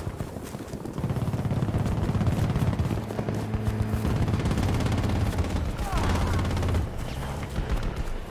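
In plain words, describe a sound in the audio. A tank engine rumbles nearby.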